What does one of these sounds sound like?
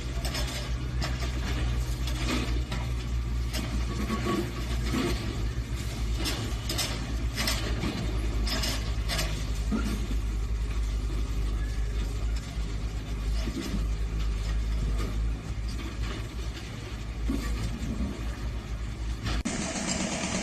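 A heavy excavator engine rumbles steadily nearby.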